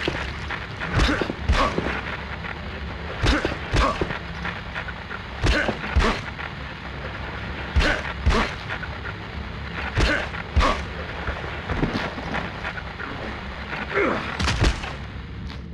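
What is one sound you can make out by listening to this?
Heavy punches thud in quick bursts.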